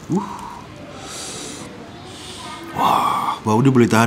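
A man chews crunchy food with his mouth full.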